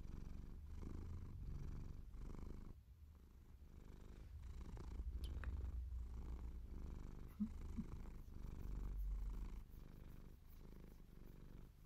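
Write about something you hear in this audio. Hands rub and rustle against something soft, close by.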